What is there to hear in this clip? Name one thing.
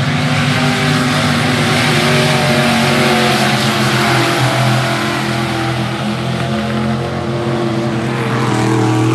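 Tyres rumble and spray on a dirt track.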